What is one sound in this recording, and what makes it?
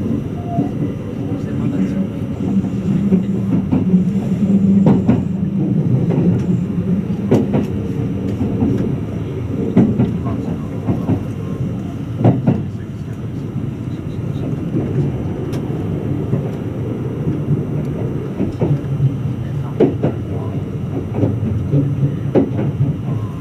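An electric express train rumbles along at speed, heard from inside.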